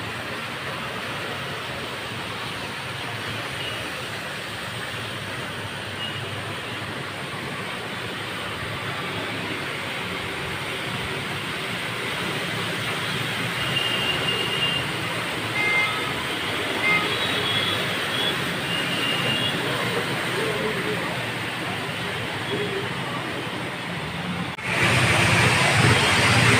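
Motorcycles ride through deep floodwater, splashing.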